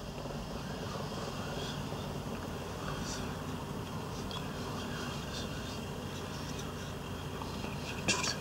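A metal pin scratches lightly on card.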